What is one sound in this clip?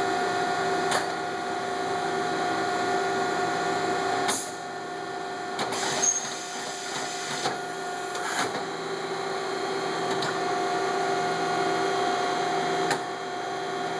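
A CNC milling machine's slide clunks as it starts and stops moving.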